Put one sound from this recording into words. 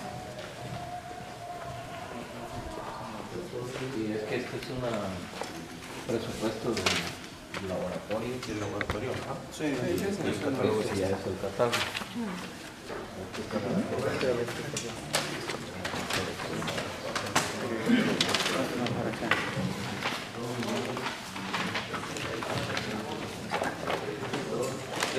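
Several men talk at once nearby in a room.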